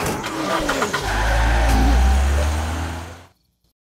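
A car engine rumbles low, then cuts off.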